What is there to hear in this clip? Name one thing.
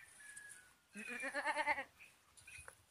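A goat bleats close by.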